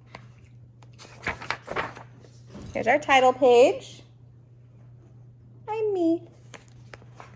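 A young woman speaks close by, reading aloud with expression.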